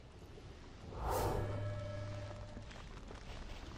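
A magical burst whooshes softly.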